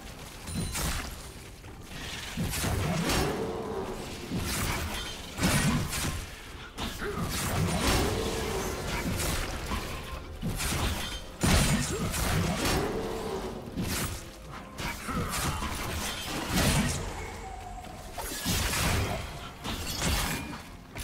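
Magical blasts whoosh and crackle as fighters clash.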